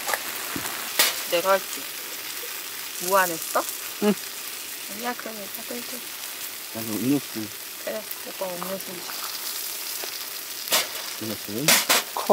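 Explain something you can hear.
Metal tongs clink against a pan.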